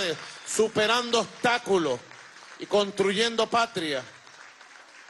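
A crowd chants loudly in unison.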